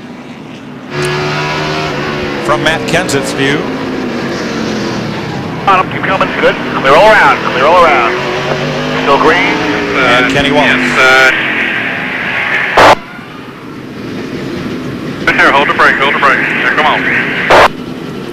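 Race car engines roar loudly at close range.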